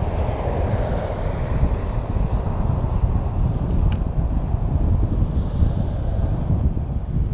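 Wind rumbles loudly across a microphone outdoors.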